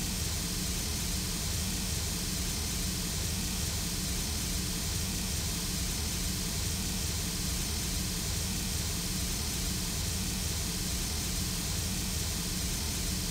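A steam locomotive idles with a steady hiss and low rumble.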